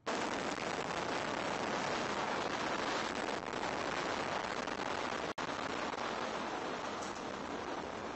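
A tall tower collapses with a long, heavy rumbling roar.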